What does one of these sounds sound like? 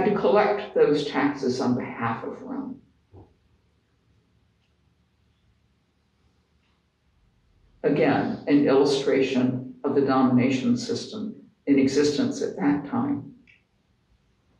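An elderly woman reads aloud calmly into a microphone, with pauses.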